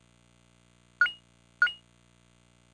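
Short electronic menu blips sound twice.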